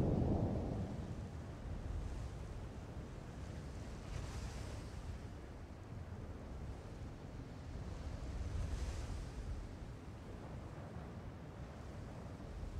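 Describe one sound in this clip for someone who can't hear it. Wind rushes past steadily in a low roar.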